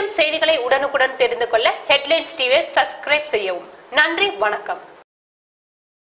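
A young woman reads out the news clearly through a microphone.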